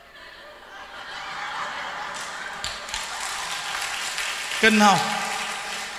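A young woman laughs heartily.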